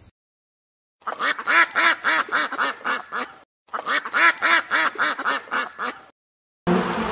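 Ducklings peep rapidly.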